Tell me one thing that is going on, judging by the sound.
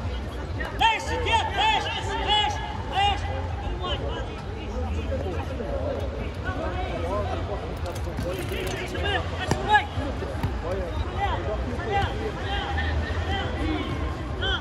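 Men shout and call out across the court.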